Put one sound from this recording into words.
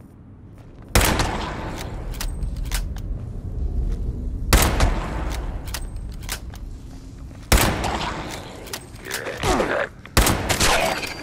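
Loud gunshots boom with echoing tails.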